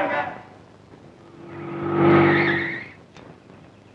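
A car engine rumbles briefly and then cuts off.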